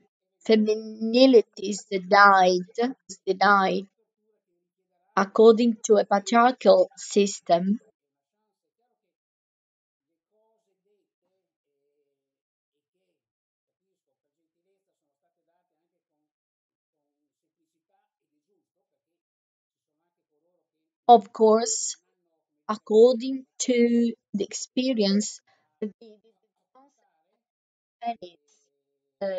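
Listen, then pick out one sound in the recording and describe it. A man talks calmly over an online call, with pauses.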